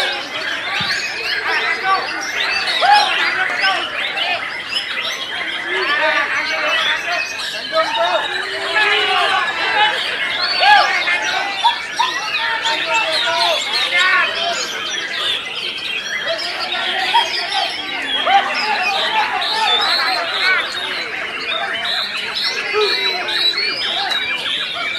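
Many caged birds sing and chirp loudly and continuously, with overlapping calls.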